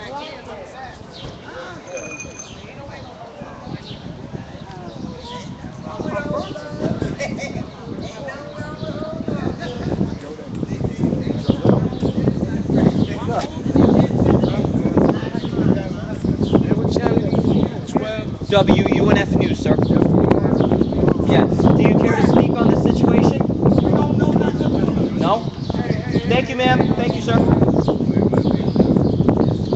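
A crowd of people talks and calls out outdoors.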